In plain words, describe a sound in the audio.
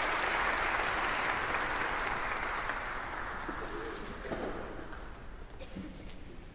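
An audience applauds in a large echoing hall and the applause slowly fades.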